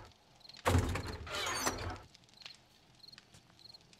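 A wooden chest lid creaks open.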